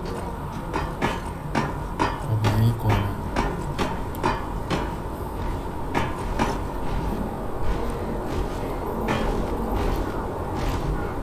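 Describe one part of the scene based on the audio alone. Footsteps thud steadily on a stone floor.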